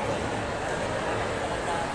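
A crowd murmurs in the distance in a large echoing hall.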